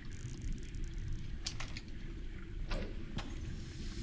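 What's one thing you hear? A bowstring twangs as an arrow is shot.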